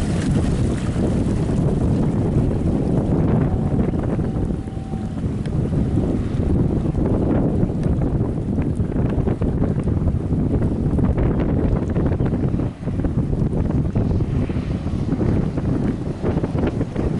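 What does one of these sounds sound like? Water sprays and splashes from a speeding boat's hull.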